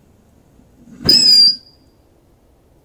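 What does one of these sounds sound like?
A lit fuse hisses briefly.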